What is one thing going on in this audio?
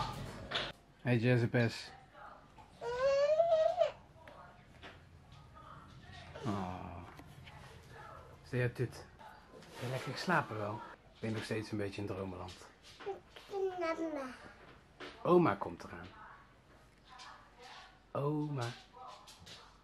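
A toddler babbles and coos nearby.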